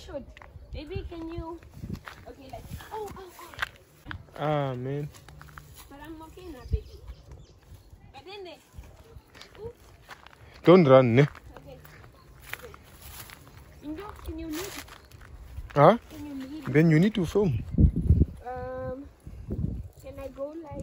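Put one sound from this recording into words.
Footsteps crunch through dry grass and twigs.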